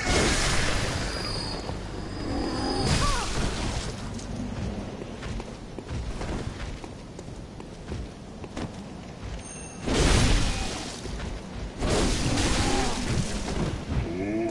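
Blades slash and strike with heavy thuds.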